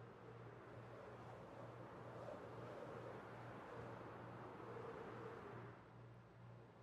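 Water laps gently in the background.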